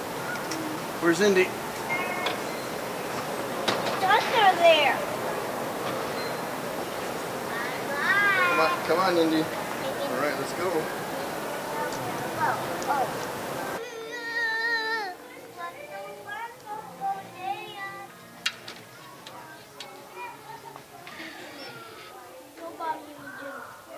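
Young children chatter and squeal nearby.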